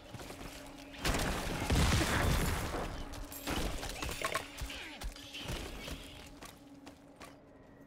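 Game combat sounds of blows and bursts clash loudly.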